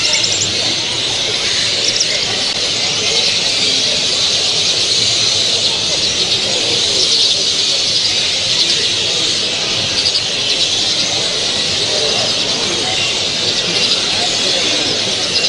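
A small songbird chirps and twitters close by.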